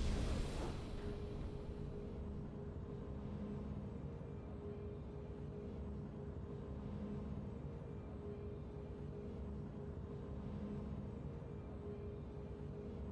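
Triumphant game victory music plays steadily.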